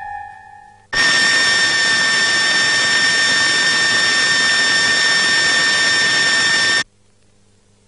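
An electric tower crackles and buzzes loudly.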